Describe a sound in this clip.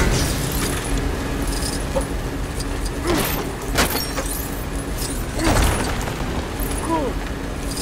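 Small plastic pieces clatter and scatter as objects break apart.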